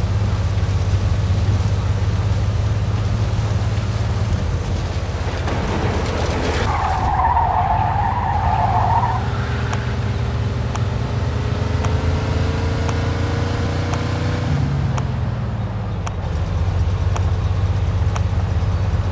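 A car engine hums and revs steadily as the car drives.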